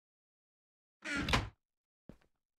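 A wooden chest lid thumps shut.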